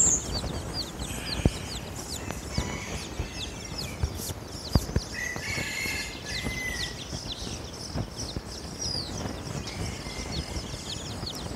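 Chicks peep constantly in high, quick chirps.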